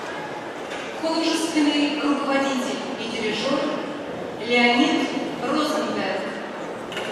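A woman speaks clearly into a microphone in a large echoing hall.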